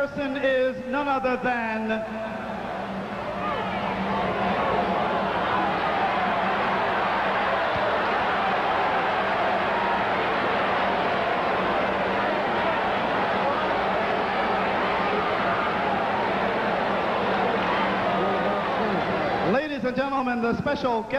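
A man announces loudly through a loudspeaker.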